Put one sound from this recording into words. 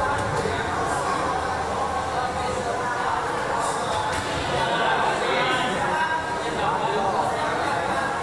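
A crowd murmurs and calls out in a large hall.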